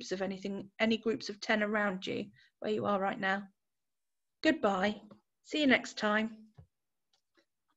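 A woman speaks calmly and warmly into a microphone, heard as if over an online call.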